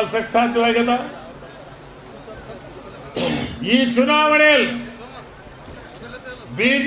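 A middle-aged man speaks forcefully into a microphone over loudspeakers, with long drawn-out phrases and pauses.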